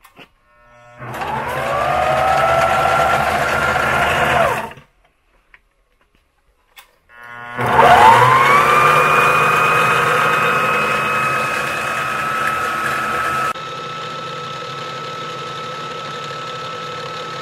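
A line-winding machine whirs, rising in pitch as it spins up and then holding steady.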